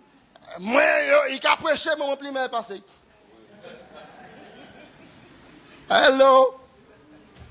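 A middle-aged man speaks loudly with animation through a microphone.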